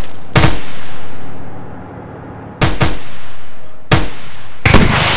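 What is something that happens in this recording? A rifle fires sharp, single shots that echo.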